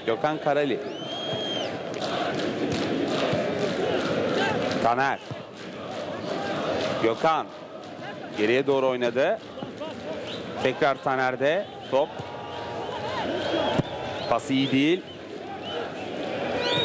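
A large crowd roars and chants steadily in an open stadium.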